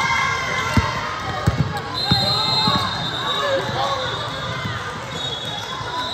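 Voices of players and spectators echo through a large gym.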